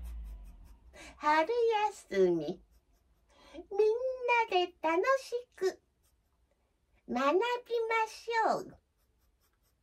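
A child plays short wavering phrases on a harmonica close by.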